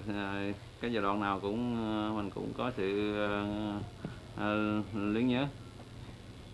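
An elderly man sings in long, drawn-out notes close by.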